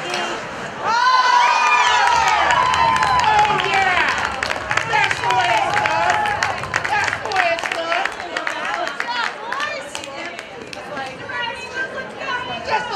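A crowd cheers and shouts loudly in an echoing arena.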